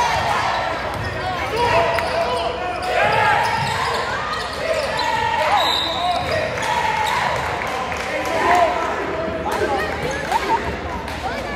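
Young women call out to one another across the court.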